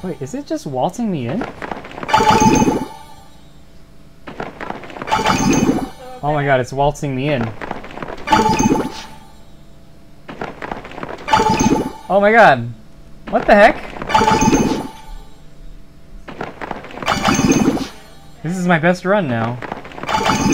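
Playful electronic game sound effects burst and warble every few seconds.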